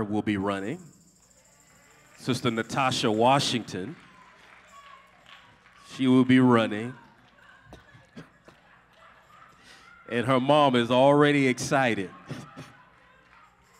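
A young man speaks with animation through a microphone in a reverberant hall, pausing between phrases.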